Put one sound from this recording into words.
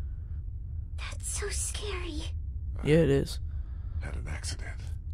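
A man speaks in a low, weary voice, close by.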